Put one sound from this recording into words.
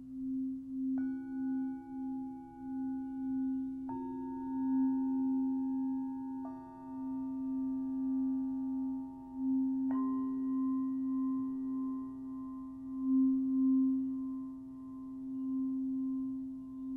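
Small metal singing bowls are struck one after another and ring out clearly.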